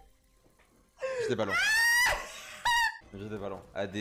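A man shouts and laughs loudly.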